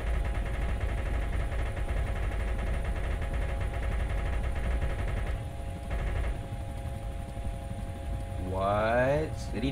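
A helicopter's engine and rotor drone steadily close by.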